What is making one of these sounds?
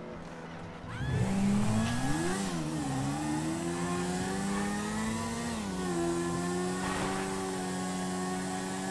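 A motorcycle engine starts, revs up and down, and then runs steadily while riding.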